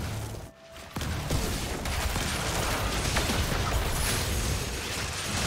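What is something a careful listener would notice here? Magic blasts crackle and clash in a video game fight.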